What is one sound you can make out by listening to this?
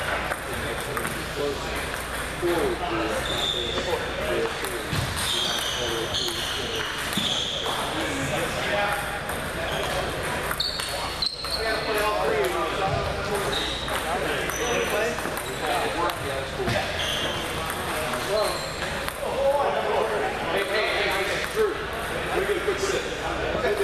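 Men talk and call out in the background.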